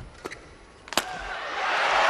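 A racket strikes a shuttlecock with a sharp crack.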